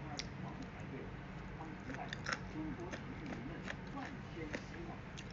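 A young woman's lips smack as she eats.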